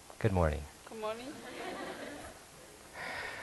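A small audience laughs softly.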